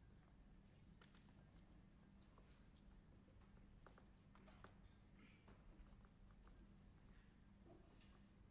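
Paper rustles faintly in a young man's hands.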